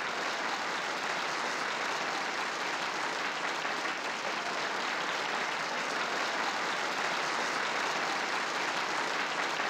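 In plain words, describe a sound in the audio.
A large crowd applauds loudly in a big room.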